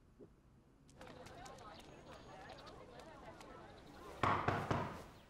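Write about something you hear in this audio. A crowd murmurs outdoors in a busy street.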